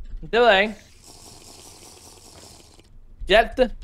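A character gulps down a drink.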